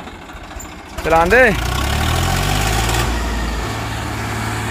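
A tractor engine revs up hard as it climbs.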